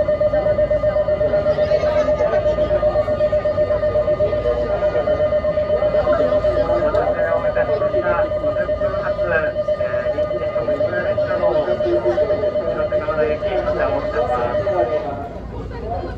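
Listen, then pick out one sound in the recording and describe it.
A standing train's equipment hums steadily with a high whine, then falls quiet.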